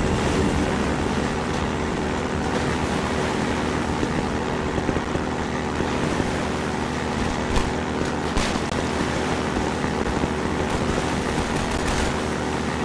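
An airboat engine drones steadily at high speed.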